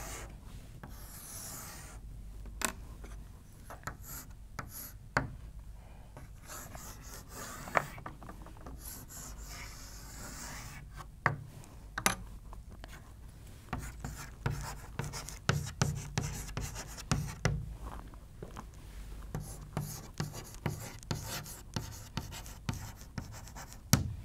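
Chalk taps and scrapes across a blackboard.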